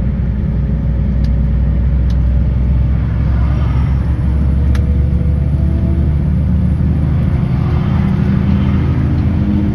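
Traffic rushes past on a motorway.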